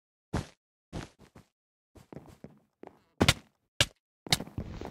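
Sharp game hit sounds thud in quick bursts.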